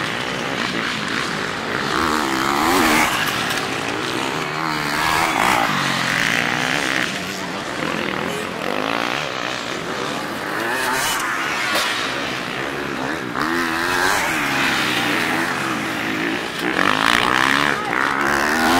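Dirt bike engines rev and whine loudly as the bikes pass close by, outdoors.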